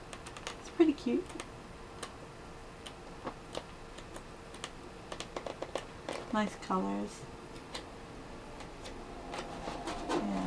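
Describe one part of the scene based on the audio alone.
Stiff paper pages rustle and flap as they are turned.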